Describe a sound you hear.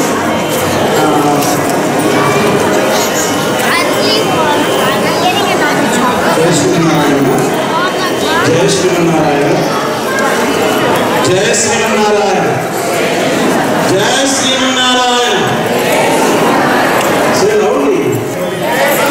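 A large crowd of women and children chatters loudly in an echoing hall.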